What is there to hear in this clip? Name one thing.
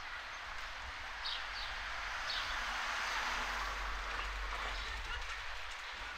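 A car drives slowly past close by.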